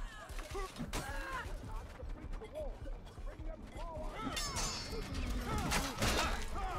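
A heavy blade strikes armour with sharp clanging hits.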